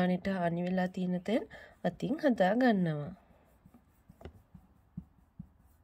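Fingers press and rub softly into damp clay.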